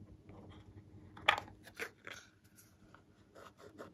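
A plastic lid clicks and rattles.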